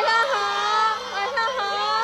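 A crowd of young women scream and cheer close by.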